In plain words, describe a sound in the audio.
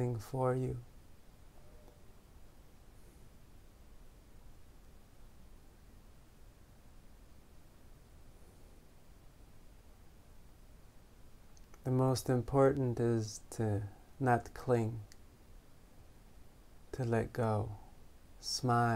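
A man speaks calmly and slowly close to a microphone, with long pauses.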